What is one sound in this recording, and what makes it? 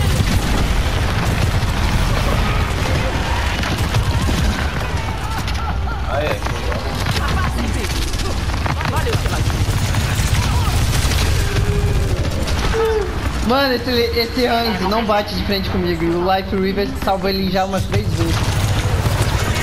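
Energy guns fire in rapid bursts with sharp zapping shots.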